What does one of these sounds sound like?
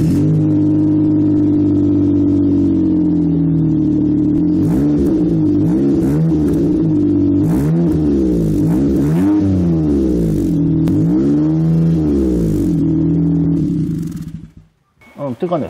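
A car engine idles with a deep, steady exhaust drone.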